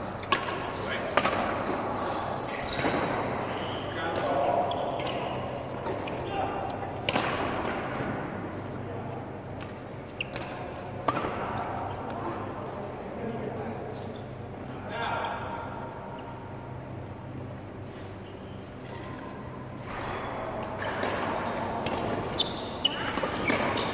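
Shoes squeak and patter on a court floor.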